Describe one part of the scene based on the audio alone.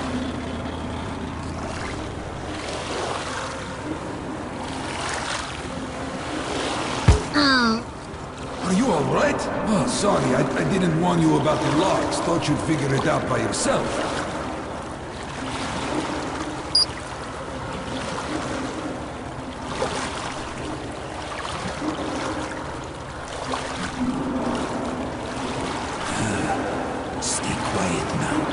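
Water laps and splashes against a slowly moving boat.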